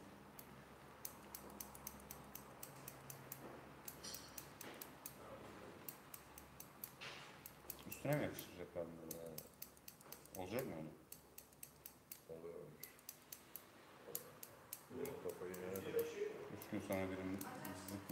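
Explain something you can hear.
Scissors snip rapidly through hair.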